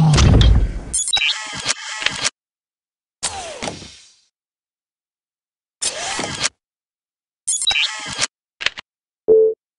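Metallic clicks and swishes sound as menus change.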